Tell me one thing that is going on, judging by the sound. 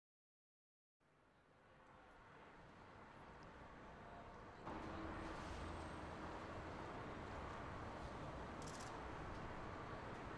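A vehicle engine rumbles as a car drives slowly past.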